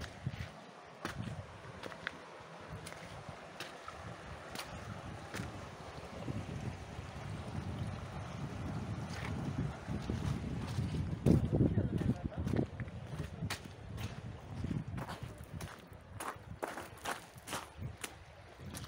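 Shallow water trickles gently over stones.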